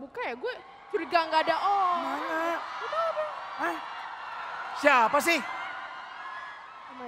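An audience laughs and claps in a large hall.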